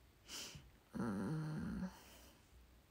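A young woman speaks briefly and softly, close to the microphone.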